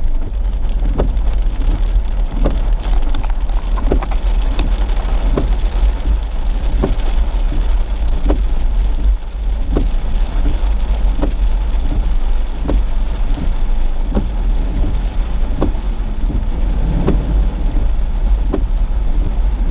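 Rain patters on a car's windshield.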